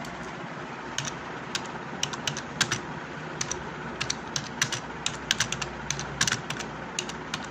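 Fingers tap quickly on laptop keys.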